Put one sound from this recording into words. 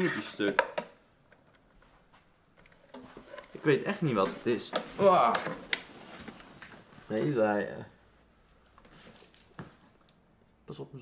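Small metal parts click and rattle as a device is handled.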